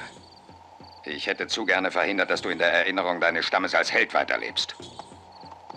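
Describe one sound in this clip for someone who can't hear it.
A man speaks firmly and close by.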